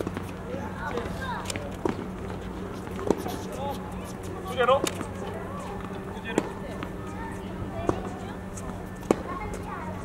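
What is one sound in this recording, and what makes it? Tennis balls are struck with rackets outdoors, each hit a sharp hollow pop.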